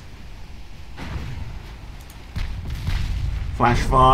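Heavy naval guns fire with deep, rumbling booms.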